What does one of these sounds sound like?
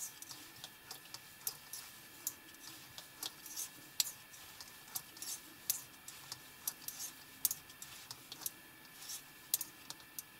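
Metal knitting needles click together as stitches are worked.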